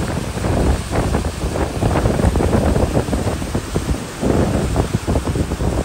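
A boat's wake churns and splashes on water.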